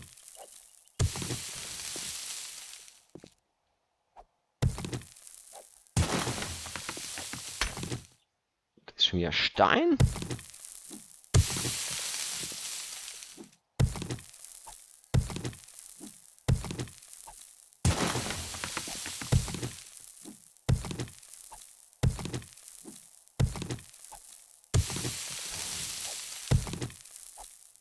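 Rubble crumbles and hisses after each blow.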